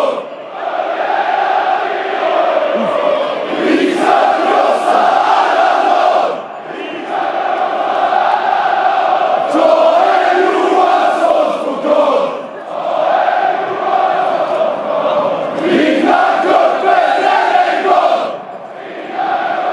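A large crowd of fans sings a loud chant in unison in a big echoing stadium.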